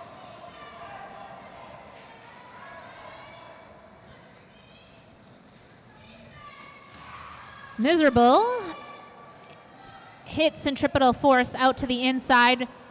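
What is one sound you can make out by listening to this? Roller skate wheels rumble and scrape on a hard floor.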